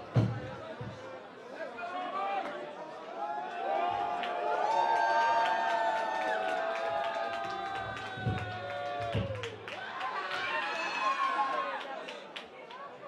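A group of men shout together nearby.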